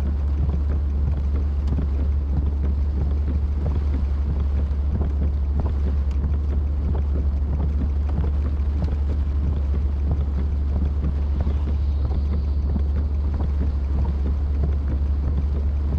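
Windshield wipers swish across the glass.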